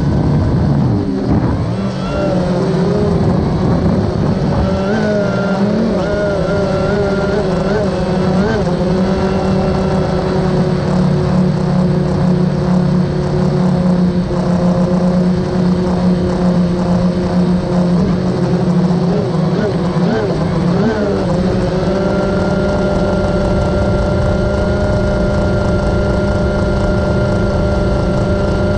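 A drone's motors hum loudly and steadily, with the pitch shifting now and then.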